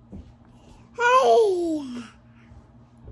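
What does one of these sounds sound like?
A young girl squeals loudly close by.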